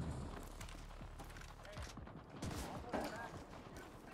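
Boots scrape against a brick wall during a climb.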